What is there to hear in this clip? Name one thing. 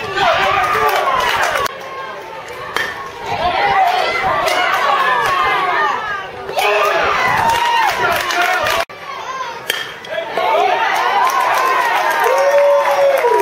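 Young players shout and cheer nearby, outdoors.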